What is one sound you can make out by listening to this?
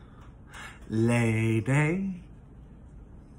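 A middle-aged man sings out in a drawn-out, wailing voice.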